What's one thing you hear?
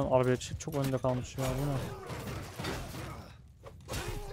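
Swords clash in a battle.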